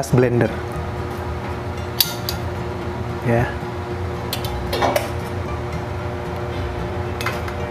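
Food is set down into a glass jar with a soft tap.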